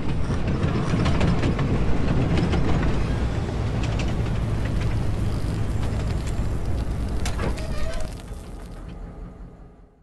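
A train engine rumbles loudly as it rolls past.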